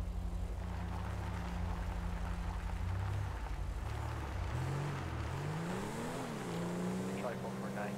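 A car engine revs as the car pulls away and speeds up.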